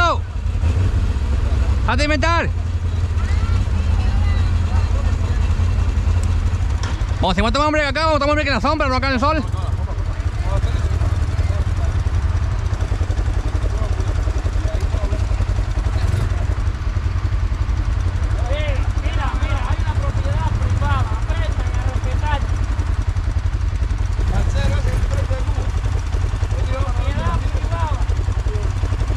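A quad bike engine idles with a low steady rumble.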